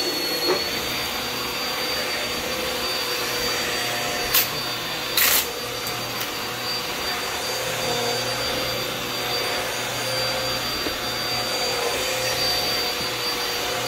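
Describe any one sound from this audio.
A vacuum cleaner whines steadily as it runs.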